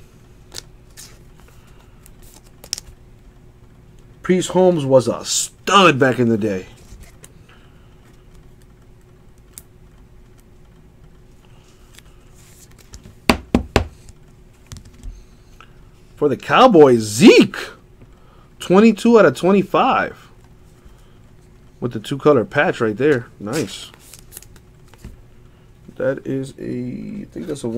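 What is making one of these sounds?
Trading cards and plastic card cases click and rustle in hands.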